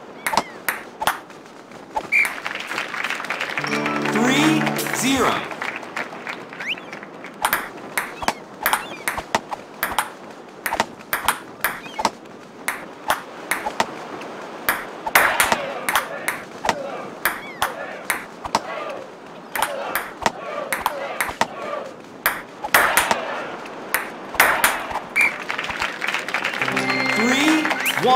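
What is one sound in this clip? A ping-pong ball clicks back and forth on paddles and a table in quick rhythm.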